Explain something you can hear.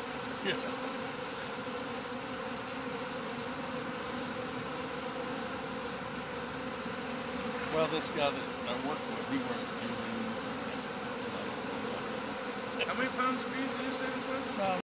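A swarm of bees buzzes and hums steadily close by.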